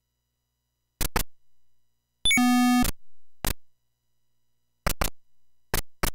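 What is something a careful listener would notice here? Electronic game beeps and blips sound in quick bursts.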